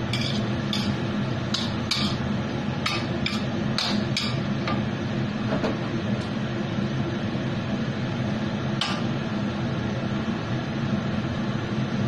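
A range hood fan hums steadily.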